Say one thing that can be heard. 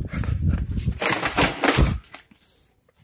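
A bicycle crashes to a hard floor with a clatter.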